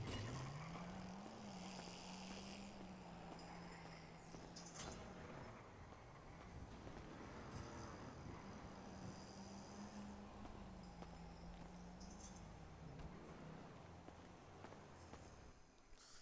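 Footsteps tap on a paved surface.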